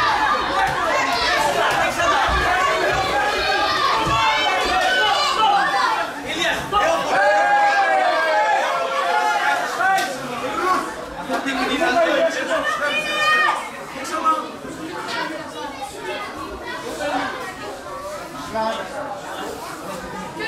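A crowd of spectators cheers and shouts in a large indoor hall.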